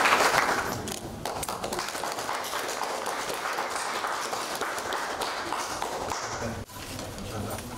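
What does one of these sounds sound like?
A small group of people applauds.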